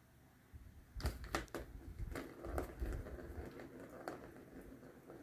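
A plastic ball rattles and clicks around a toy track as a cat paws at it.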